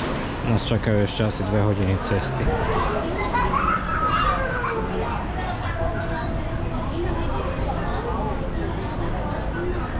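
Men and women chat quietly in the background.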